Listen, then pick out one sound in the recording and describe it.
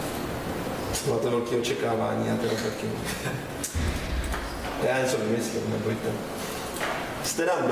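A man speaks calmly to a room, heard through a microphone in a hall that echoes a little.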